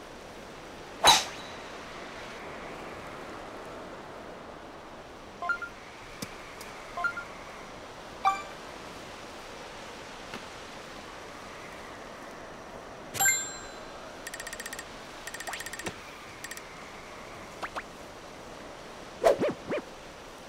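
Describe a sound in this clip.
A golf club strikes a ball with a sharp smack.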